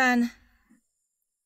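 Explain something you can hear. A young woman speaks briefly, sounding alarmed.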